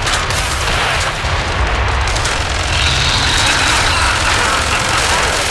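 Automatic gunfire rattles rapidly and loudly.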